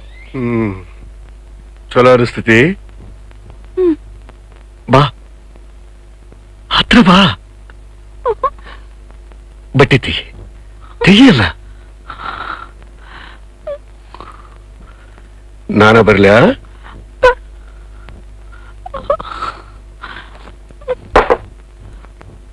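A man speaks in a slow, deep voice.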